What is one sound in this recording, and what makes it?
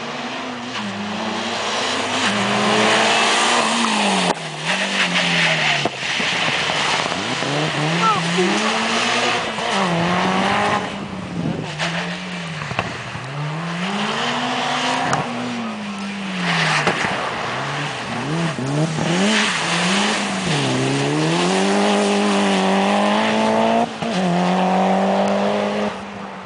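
A rally car engine revs hard, its pitch rising and falling again and again.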